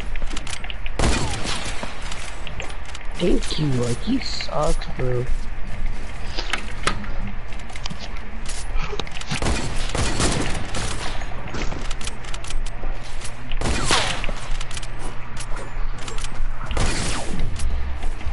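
Loud gunshots boom now and then and echo away.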